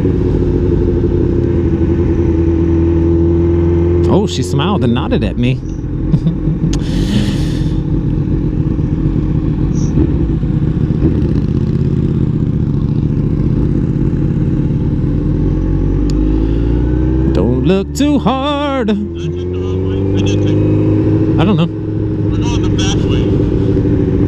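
A sport motorcycle engine drones as the bike cruises and shifts gears.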